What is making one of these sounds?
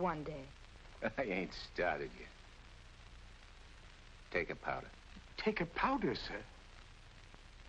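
A young man speaks with animation nearby.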